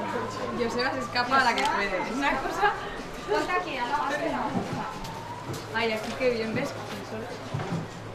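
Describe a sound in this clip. A young woman talks cheerfully nearby.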